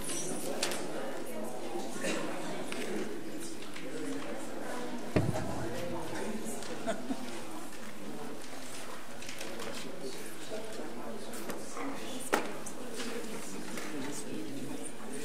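A crowd of men and women chatter in a room.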